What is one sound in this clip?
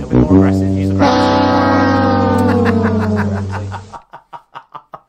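A man sings out a long, loud note.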